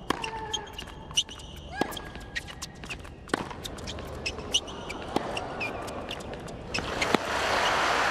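A tennis ball is struck with sharp pops of a racket.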